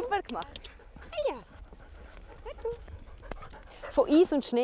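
A dog whines and howls nearby.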